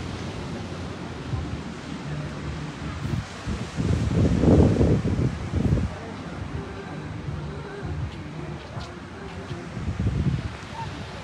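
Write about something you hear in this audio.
Waves wash onto a beach nearby.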